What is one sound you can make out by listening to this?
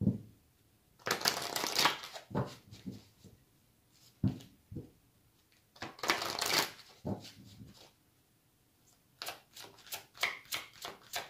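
A deck of cards is shuffled with quick, rustling riffles.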